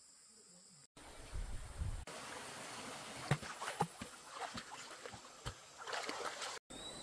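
Water splashes as a man wades and scoops in a stream.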